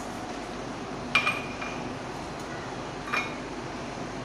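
A metal cup clinks on a counter.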